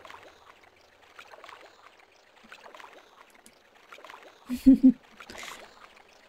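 Water splashes softly as a swimmer strokes through it.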